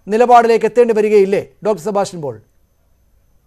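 A woman speaks earnestly over an online call.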